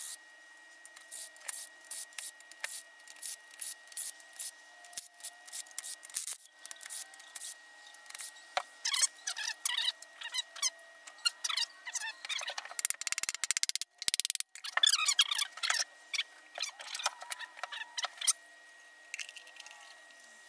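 Metal parts clink and knock against an engine block as they are worked loose by hand.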